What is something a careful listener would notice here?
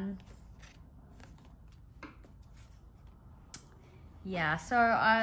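Paper cards rustle softly as hands shuffle them.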